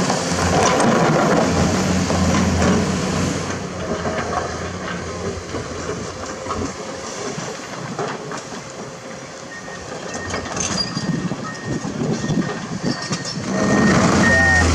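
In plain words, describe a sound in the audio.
Rocks clatter and scrape in an excavator bucket.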